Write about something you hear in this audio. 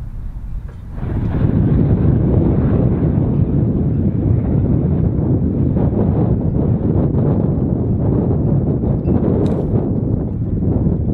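An aircraft drones loudly overhead as it flies past.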